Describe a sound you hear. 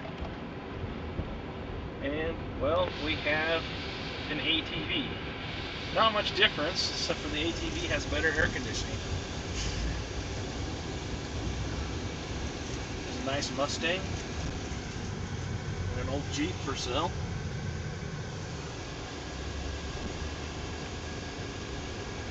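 A car engine hums steadily and tyres rumble on the road.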